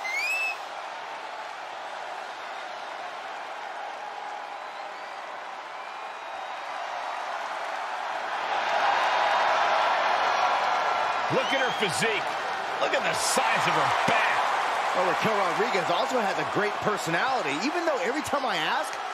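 A large crowd cheers in a big echoing arena, growing louder partway through.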